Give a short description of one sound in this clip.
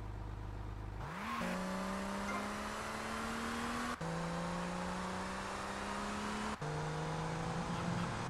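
A car engine revs hard, climbing in pitch and dropping with each gear change.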